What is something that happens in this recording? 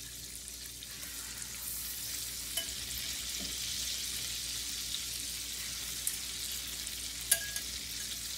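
Metal tongs clink against a pan.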